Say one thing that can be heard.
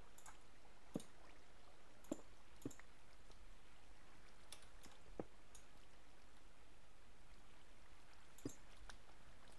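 Short, dull knocks sound as blocks are broken and placed.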